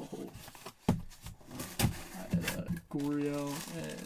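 Cardboard scrapes and thumps as a box is opened.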